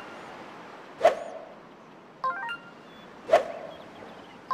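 A golf club swishes through the air in practice swings.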